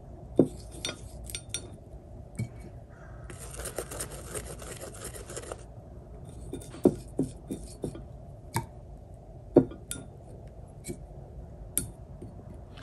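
A paintbrush taps against a ceramic palette.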